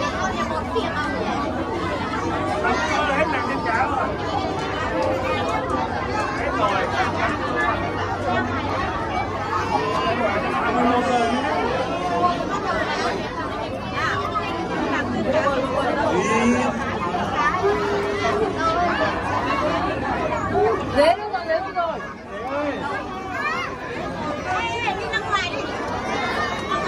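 A crowd of adults and children chatters all around in an echoing space.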